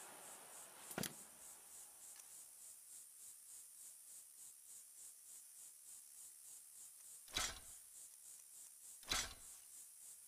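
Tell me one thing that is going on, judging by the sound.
A menu clicks a few times.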